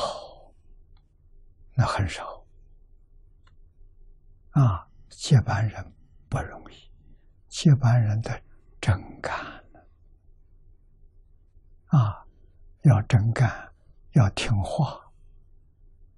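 An elderly man speaks calmly and slowly into a close microphone, with long pauses.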